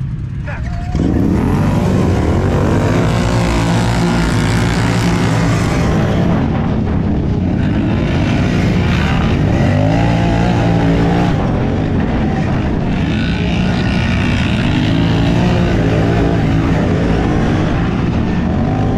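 Quad bike engines roar loudly at full throttle as they race away.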